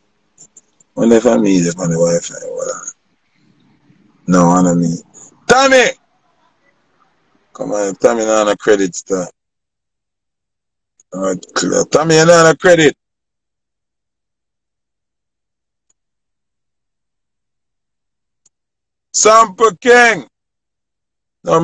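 A young man speaks casually over an online video call, close to the microphone, in short bursts with pauses.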